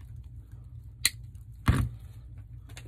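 Wire cutters snip with a sharp click.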